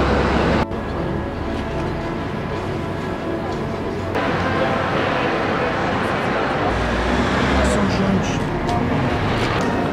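Papers rustle between hands.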